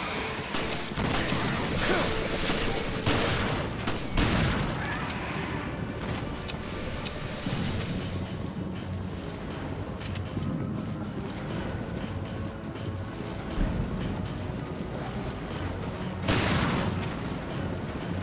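Gunshots bang loudly in short bursts.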